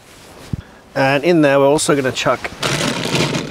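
A man speaks casually nearby, outdoors.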